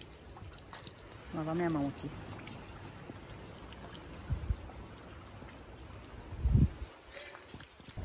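Water trickles softly over rocks.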